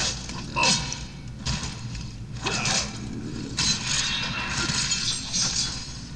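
Metal blades clash and clang in a fight.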